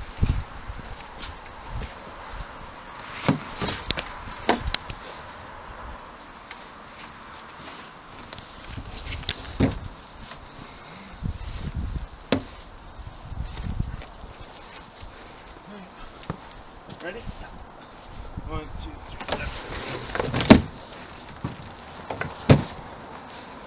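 Heavy gear knocks and thumps against a wooden frame.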